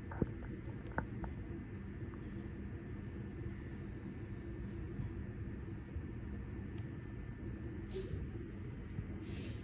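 A body slides softly across a smooth floor.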